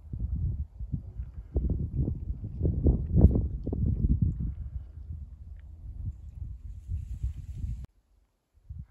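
Wind gusts outdoors, buffeting and rumbling.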